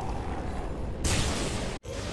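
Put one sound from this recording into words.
A giant creature lets out a deep, pained roar.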